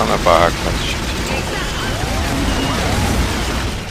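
A large beast growls and snarls during a fight.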